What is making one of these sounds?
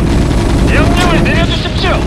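Weapons fire in short, rattling bursts.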